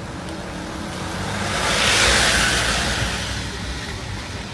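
A large vehicle passes close by with a rushing roar.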